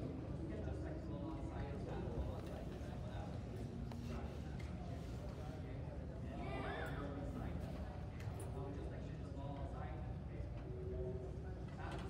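Men's and women's voices chatter at a distance in a large echoing hall.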